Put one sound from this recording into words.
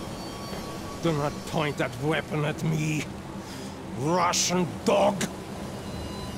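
A man speaks threateningly in a low, menacing voice, close by.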